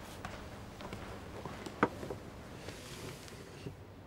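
A flat case is set down on a table with a light knock.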